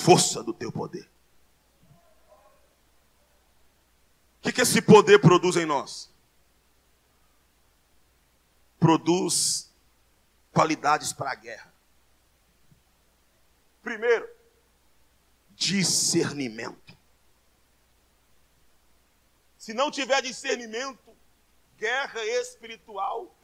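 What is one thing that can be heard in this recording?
A man preaches into a microphone over loudspeakers, in bursts of forceful speech with pauses between.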